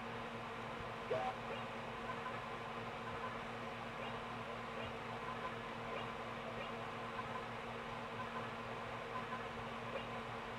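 Quiet electronic game music plays through a television speaker.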